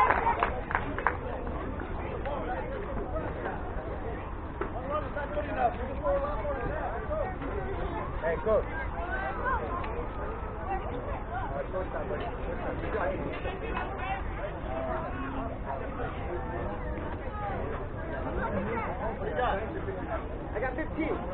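Young players call out to one another at a distance across an open field.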